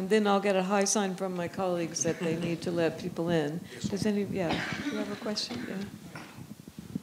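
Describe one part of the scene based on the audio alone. A young woman speaks with animation through a microphone in a large room.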